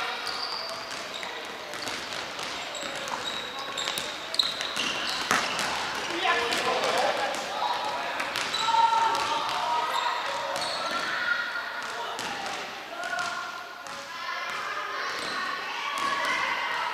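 Young players shout and call out to each other.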